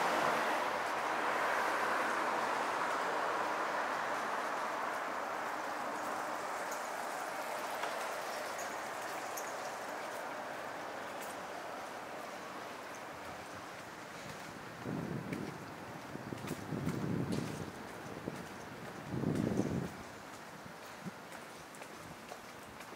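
Traffic hums steadily along a nearby city street, slowly fading.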